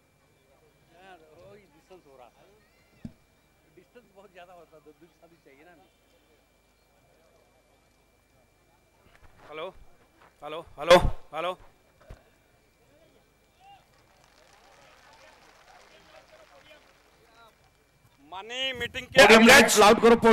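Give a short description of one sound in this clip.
A man speaks loudly into a microphone through loudspeakers outdoors.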